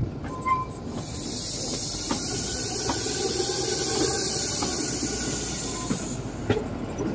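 Air rushes past an open train window.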